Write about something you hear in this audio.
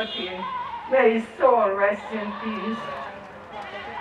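An elderly woman speaks tearfully into a microphone outdoors.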